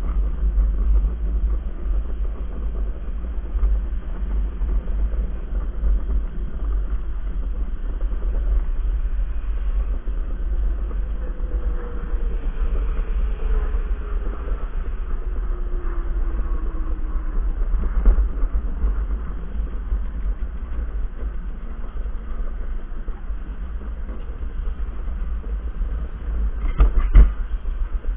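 Wheels rumble and rattle over a concrete track.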